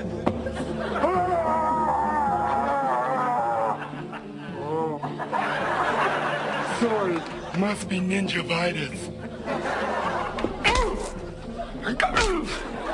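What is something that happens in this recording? A man wails in a strained, drawn-out voice nearby.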